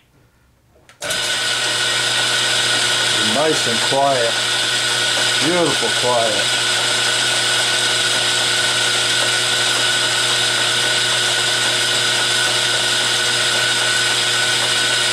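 A machine motor starts up suddenly and runs with a steady loud whir.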